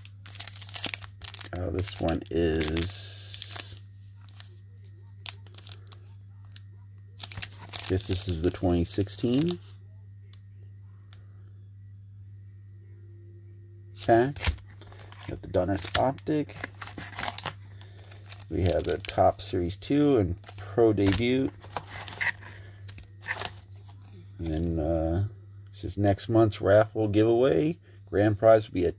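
Foil wrappers crinkle and rustle as card packs are handled.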